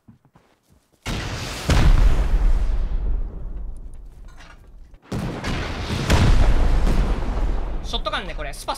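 Rockets blast and explode with loud booming roars.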